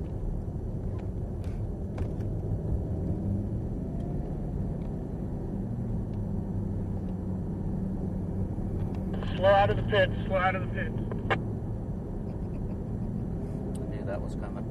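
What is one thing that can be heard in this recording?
A car engine drones steadily inside the cabin.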